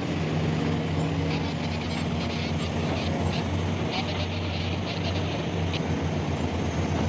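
A bulldozer's metal tracks clank and squeak.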